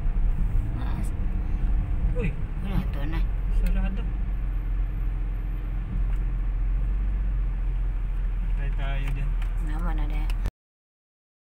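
A car drives along an asphalt road, its engine and tyres rumbling low from inside the car.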